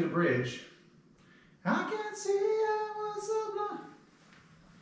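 A woman sings a short melody close to a microphone, with long held notes.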